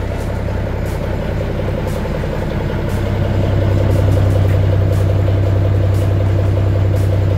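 A truck's diesel engine idles with a deep, steady rumble close by.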